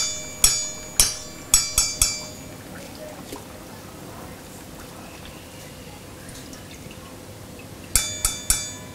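A metal fork taps against the rim of a steel pan with a ringing clang.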